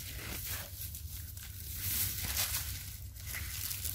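A hand rustles and scrapes through dry leaves and soil.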